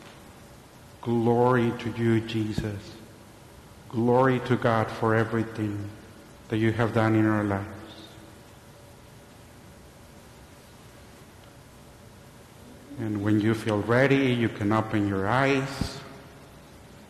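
A man speaks calmly in a large echoing room.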